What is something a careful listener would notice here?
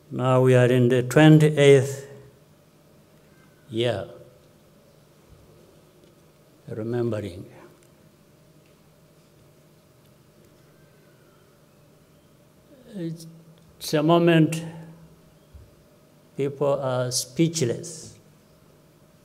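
A middle-aged man speaks slowly and solemnly into a microphone, with long pauses, over loudspeakers outdoors.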